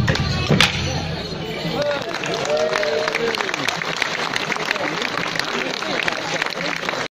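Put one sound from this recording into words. Morris dancers clack wooden sticks together.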